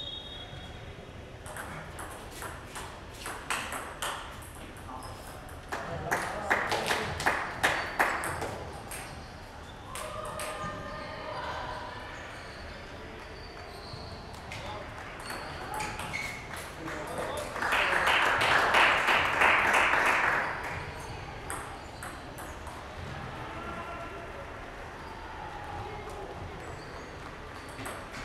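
A ping-pong ball clicks back and forth on paddles and a table in a large echoing hall.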